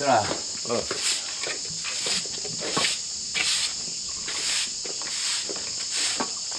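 A broom sweeps across the ground in short strokes.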